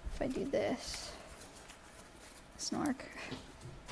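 Paper crinkles and rustles in a person's hands.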